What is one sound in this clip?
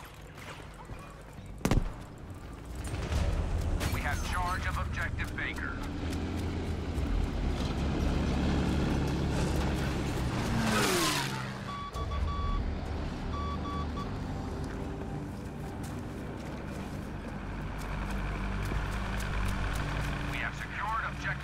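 Footsteps thud quickly on dirt and grass.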